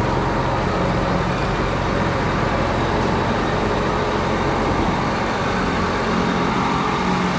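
A large tractor engine rumbles steadily close by.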